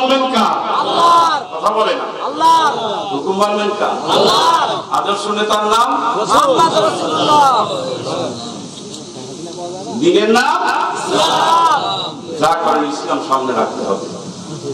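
A middle-aged man preaches passionately into a microphone through loudspeakers, his voice rising into a chant.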